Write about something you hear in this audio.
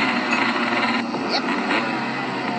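A cartoon explosion bursts from a tablet's speaker.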